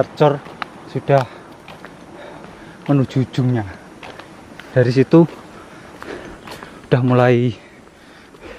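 A man speaks close by in short phrases, outdoors.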